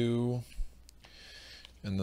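A game piece taps softly on a board.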